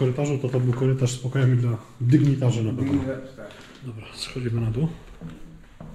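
A middle-aged man talks close by with animation.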